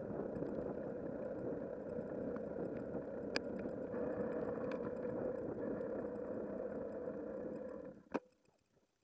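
Tyres roll steadily over a paved lane.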